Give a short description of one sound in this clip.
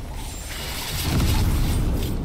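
Bright energy slashes whoosh loudly in quick bursts.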